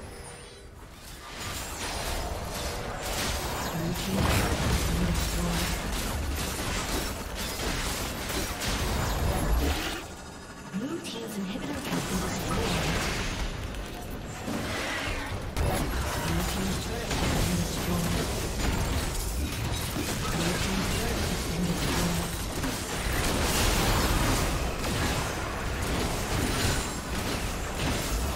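Magic blasts and explosions crash and whoosh in a hectic fight.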